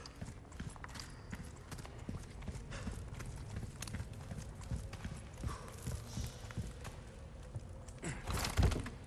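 Footsteps crunch over the ground and creak on wooden boards.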